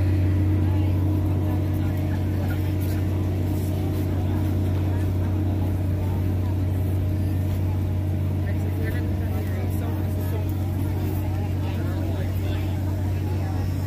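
A crowd of people chatters at a distance outdoors.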